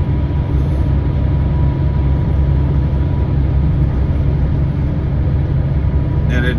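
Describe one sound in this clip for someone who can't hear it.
A truck engine drones steadily at speed.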